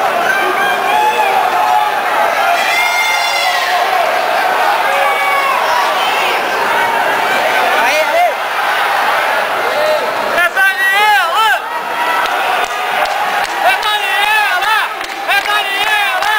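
A crowd of spectators shouts and cheers in a large echoing indoor arena.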